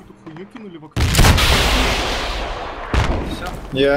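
A rifle fires a loud shot that echoes away.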